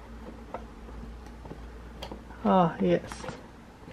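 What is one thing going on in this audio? A wrench clicks against a metal bolt.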